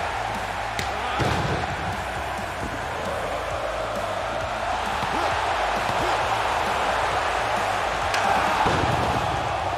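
Wrestlers' bodies slam onto the ring mat with heavy thuds.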